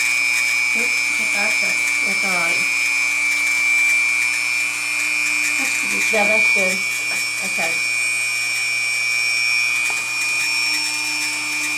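A small rotary grinding tool whines steadily.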